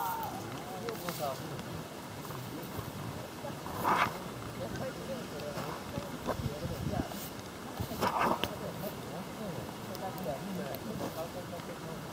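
Several men and women chat casually nearby outdoors.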